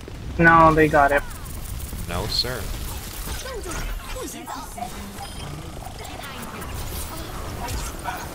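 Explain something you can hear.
Rapid bursts of game gunfire and blasts ring out.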